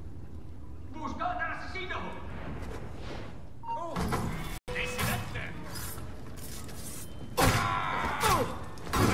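A man shouts in alarm.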